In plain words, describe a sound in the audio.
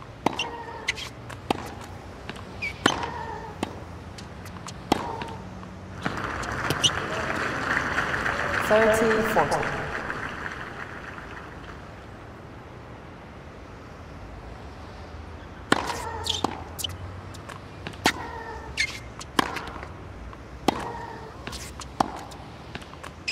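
A tennis ball is struck back and forth with sharp pops of a racket.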